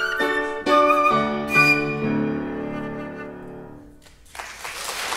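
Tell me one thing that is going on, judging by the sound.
A flute plays a melody, close and clear.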